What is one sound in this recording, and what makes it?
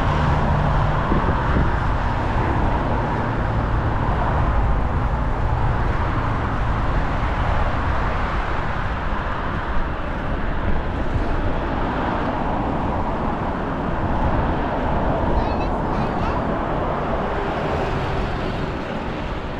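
Bicycle tyres roll steadily over smooth pavement.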